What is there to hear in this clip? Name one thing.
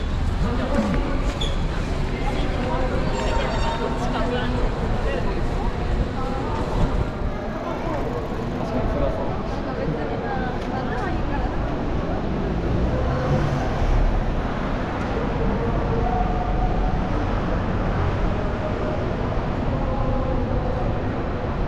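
A crowd of people chatters nearby.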